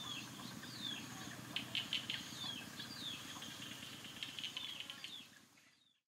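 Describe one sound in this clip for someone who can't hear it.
Birds chirp and call outdoors, fading away at the end.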